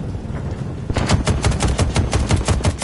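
A machine gun fires in a rapid burst.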